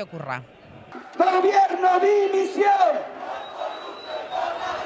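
A man shouts through a megaphone.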